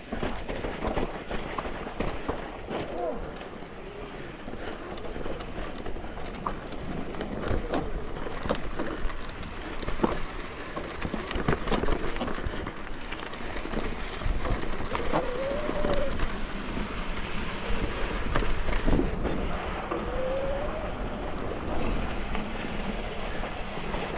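Wind rushes loudly.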